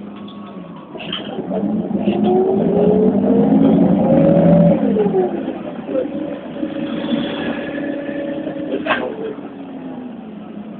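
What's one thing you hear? A train passes close by with a rising and falling roar.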